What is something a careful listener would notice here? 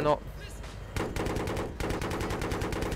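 A cannon fires in rapid bursts.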